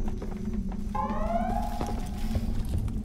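A motion tracker pings with rising electronic chirps.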